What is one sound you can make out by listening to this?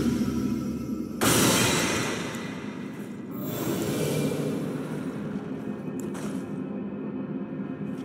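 A heavy blade whooshes through the air.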